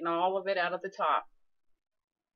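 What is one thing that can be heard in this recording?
A woman speaks close up, with animation.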